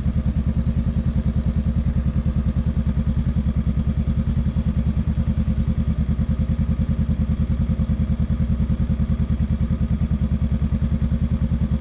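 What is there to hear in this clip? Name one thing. A parallel-twin cruiser motorcycle engine thrums as the bike cruises at steady speed.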